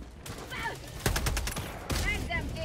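Rapid gunshots fire in a quick burst.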